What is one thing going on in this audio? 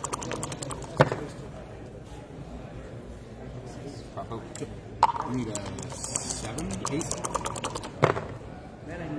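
Dice clatter onto a table.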